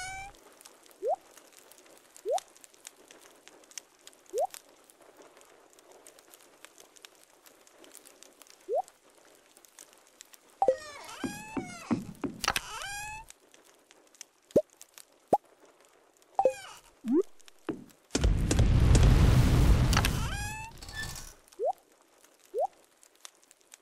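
Short soft blips sound as game items are picked up and moved.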